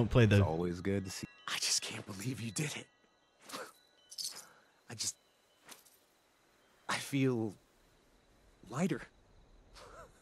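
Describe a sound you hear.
A man speaks calmly and haltingly, close by.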